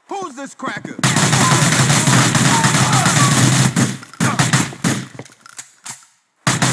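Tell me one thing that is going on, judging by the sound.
A submachine gun fires rapid bursts of loud shots.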